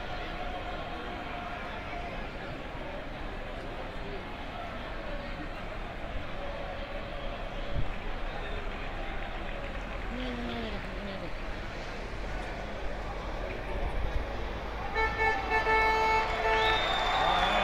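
A distant crowd murmurs outdoors.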